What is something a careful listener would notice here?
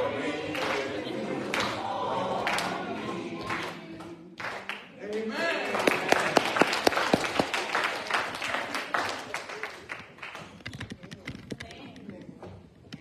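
People clap their hands in rhythm.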